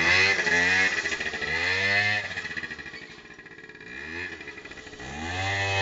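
A scooter engine drives off and fades into the distance.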